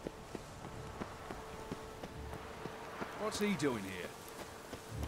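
Footsteps run quickly over stone.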